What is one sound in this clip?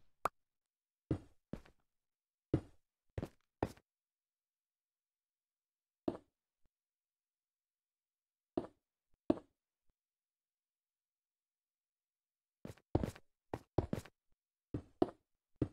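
Blocks are placed one after another with short, dull knocks.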